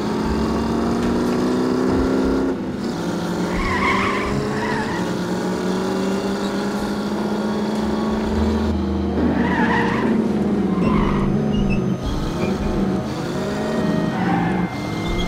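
An old car engine hums steadily, rising and falling in pitch as it speeds up and shifts gears.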